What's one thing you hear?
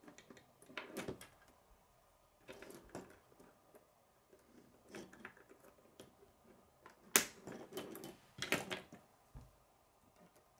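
Plastic toy construction pieces click and clatter as hands snap them together.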